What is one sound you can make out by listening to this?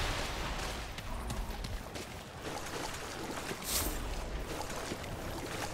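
Footsteps crunch through grass and gravel at a walking pace.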